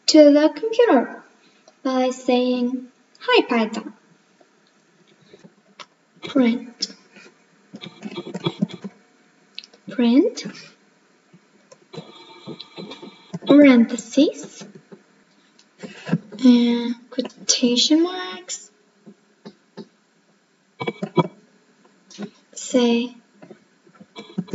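A young girl speaks calmly close to a microphone, explaining.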